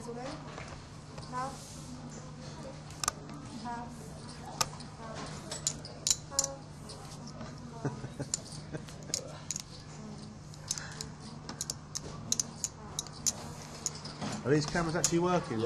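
Poker chips click together.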